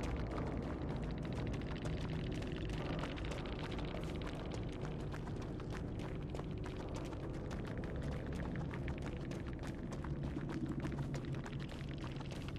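Footsteps run and rustle through tall grass.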